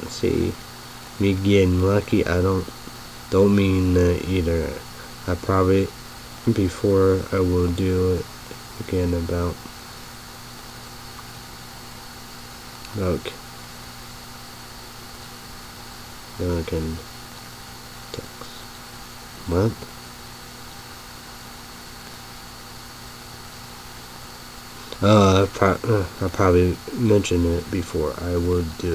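A young man speaks calmly close to a microphone, with long pauses.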